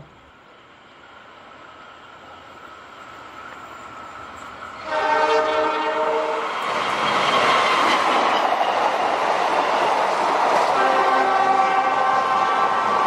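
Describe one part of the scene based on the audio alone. A train rumbles and clatters past close by, growing louder as it nears.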